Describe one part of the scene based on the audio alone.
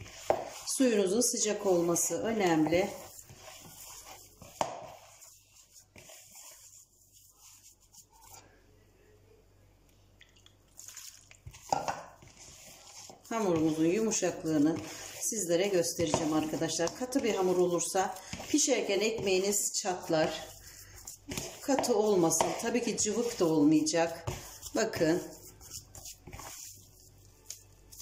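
Hands squish and knead crumbly dough in a bowl.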